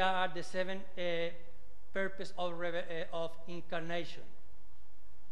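An elderly man speaks steadily into a microphone.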